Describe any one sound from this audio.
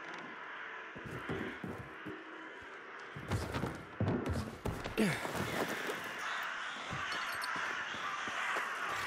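Hands grip and scrape against stone and wood while climbing, with heavy thuds.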